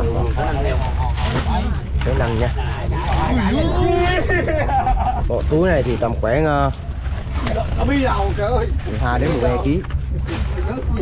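Men talk loudly nearby.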